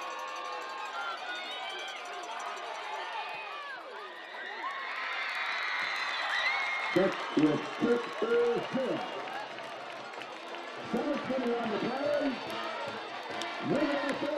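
A football crowd cheers and shouts outdoors.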